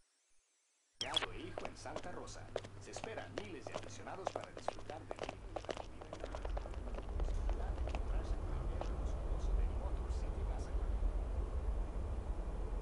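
Footsteps tap on a stone floor in an echoing space.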